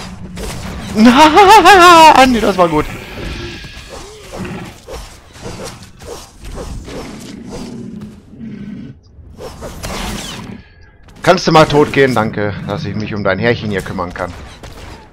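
A large beast roars loudly.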